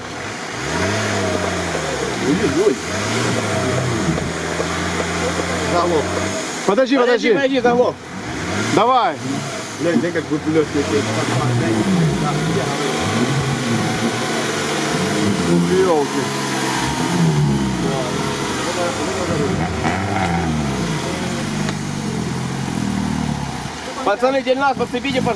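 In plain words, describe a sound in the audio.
A car engine revs hard, rising and falling over and over.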